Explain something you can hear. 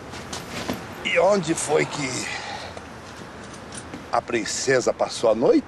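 An elderly man talks with animation nearby.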